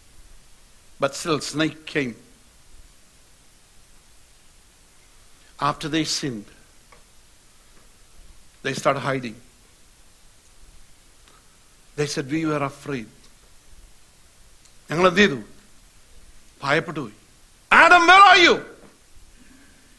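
A man speaks slowly and forcefully into a microphone, pausing between short phrases.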